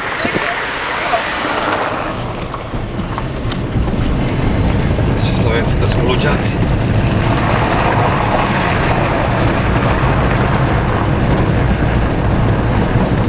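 A car drives over a bumpy road, heard from inside the car.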